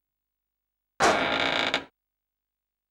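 A heavy sliding door whooshes shut.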